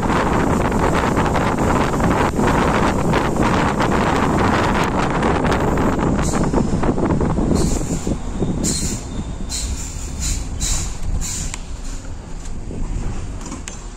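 A vehicle engine rumbles steadily while driving along a road.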